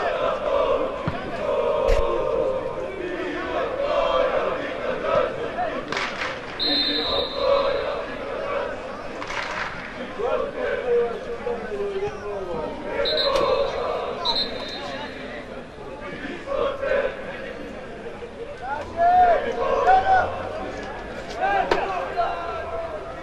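Football players shout to each other across an open outdoor field.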